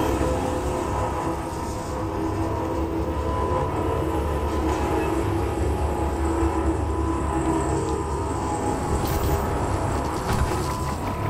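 Deep, droning electronic music plays steadily.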